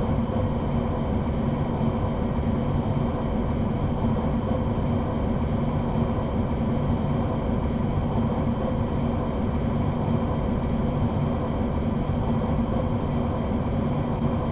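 A train's electric motor hums steadily as the train runs along the tracks.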